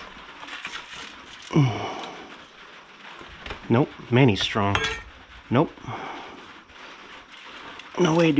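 A metal bar scrapes and knocks on a gritty floor.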